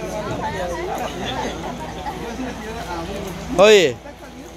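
Several young people chatter and laugh together outdoors.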